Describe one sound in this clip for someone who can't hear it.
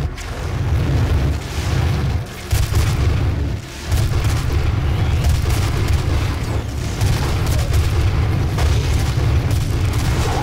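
Fireballs burst with loud booming blasts.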